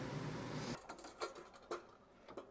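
Metal pans rattle as a cabinet drawer slides out.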